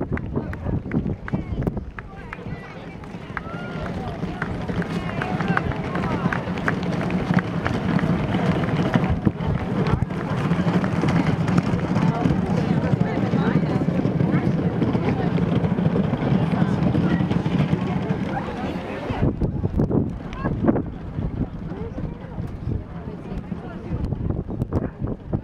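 A crowd of adults chatters in the background outdoors.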